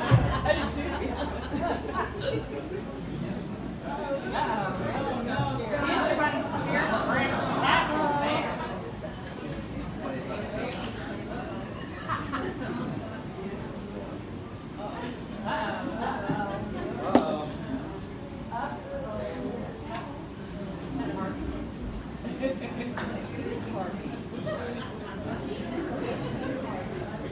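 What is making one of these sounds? A banjo is picked through loudspeakers in an echoing hall.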